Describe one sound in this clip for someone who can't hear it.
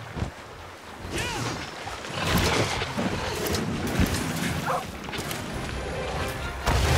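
Weapons clash loudly in a fight.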